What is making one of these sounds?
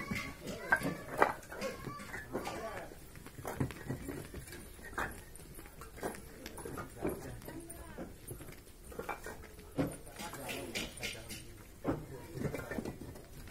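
Footsteps crunch on loose brick rubble.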